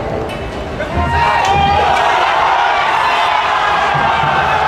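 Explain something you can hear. A large crowd cheers and screams in an echoing arena.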